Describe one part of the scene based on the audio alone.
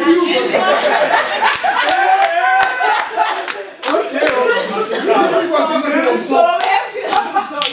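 A group of young women laughs and cheers loudly nearby.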